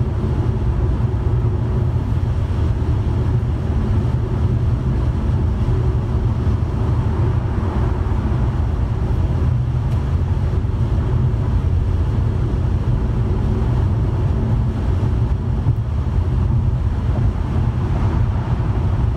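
A car's tyres and engine rumble steadily inside a car moving on a highway.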